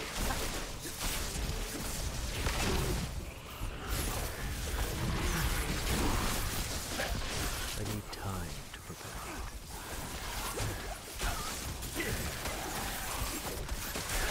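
Magic spells crackle and zap in quick bursts.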